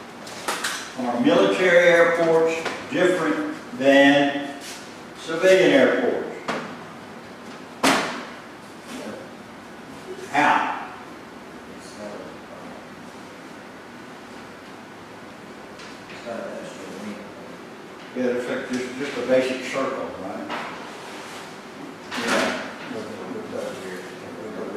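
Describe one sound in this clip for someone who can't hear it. A man speaks calmly to a group in a room with a slight echo.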